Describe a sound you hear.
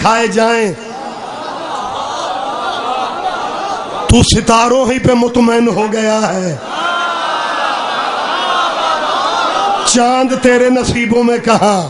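A man orates loudly and passionately through a microphone and loudspeakers.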